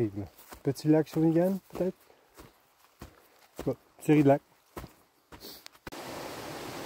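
A middle-aged man speaks calmly and close by, in short bursts.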